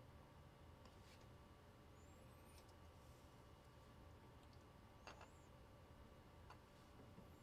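Small plastic pieces click and rattle softly.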